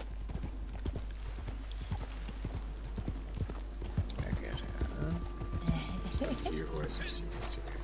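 Horse hooves clop on dry ground.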